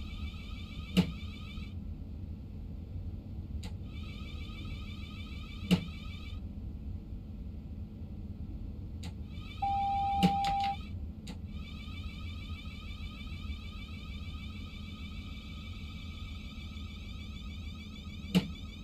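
Train wheels knock sharply over rail joints now and then.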